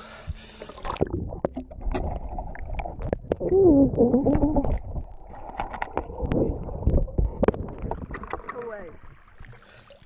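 Water gurgles and rumbles muffled underwater.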